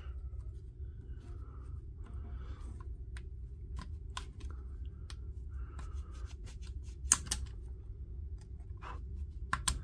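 A metal pick scrapes and clicks against a plastic battery holder.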